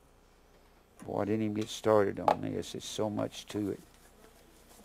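An older man reads aloud clearly and calmly, close by.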